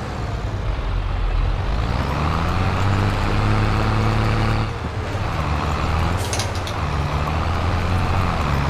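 Soil churns under a tractor's tilling tines.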